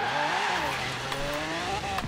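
Tyres screech on the road.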